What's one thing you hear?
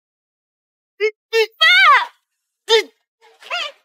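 A young woman speaks tearfully nearby.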